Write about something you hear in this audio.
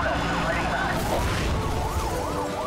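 A car crashes with a loud metallic impact.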